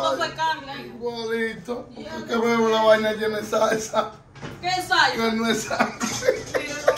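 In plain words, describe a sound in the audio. A middle-aged man laughs loudly close by.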